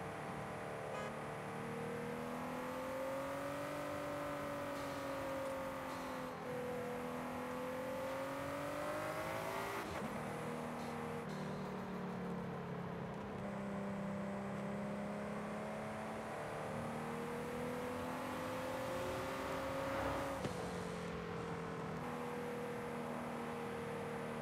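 A sports car engine roars steadily, rising and falling in pitch as the car shifts gears.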